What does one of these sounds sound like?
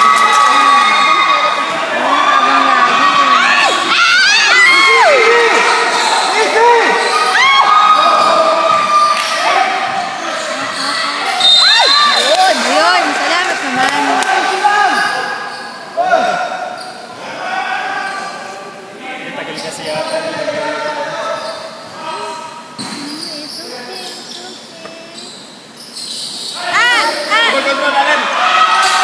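Young men shout and call out to one another across an echoing hall.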